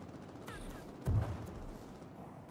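A heavy blast booms with a deep rumble.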